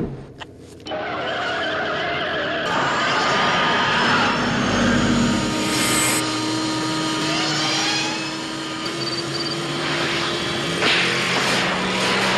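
A car engine revs loudly.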